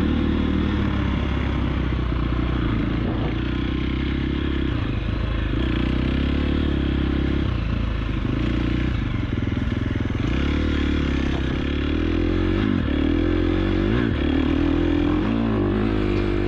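A dirt bike engine revs and changes pitch as it rides.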